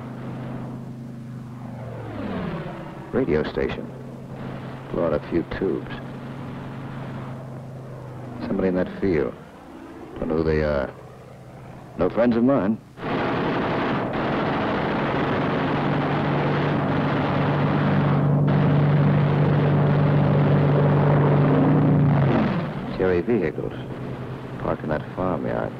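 A propeller plane's engine drones steadily overhead.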